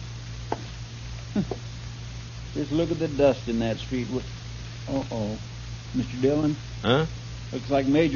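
A wood fire crackles and pops.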